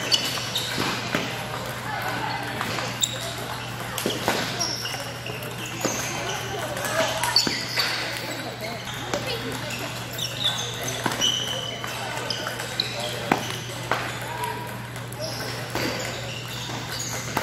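Shoes squeak and balls bounce in a busy echoing hall.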